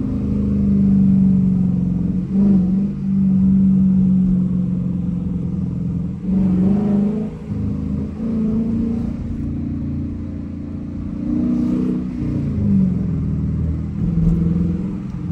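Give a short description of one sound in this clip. A V8 muscle car engine roars under hard acceleration, heard from inside the car.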